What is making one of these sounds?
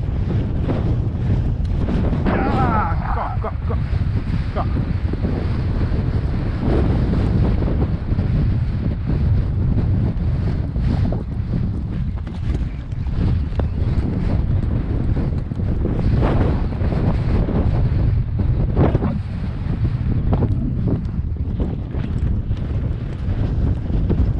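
Wind rumbles loudly across an open space.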